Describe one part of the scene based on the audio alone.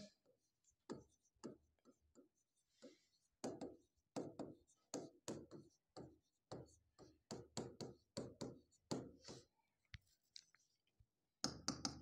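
A pen taps and squeaks against a board while writing.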